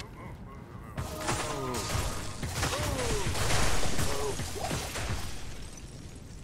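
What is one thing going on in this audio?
Crackling magic blasts burst and whoosh.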